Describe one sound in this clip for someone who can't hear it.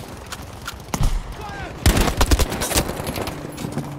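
Rapid rifle shots crack loudly.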